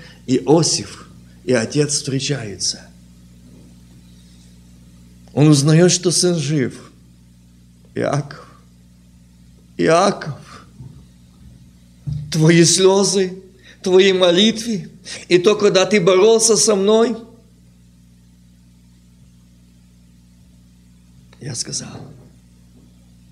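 A middle-aged man speaks emphatically into a microphone in bursts, with pauses between phrases.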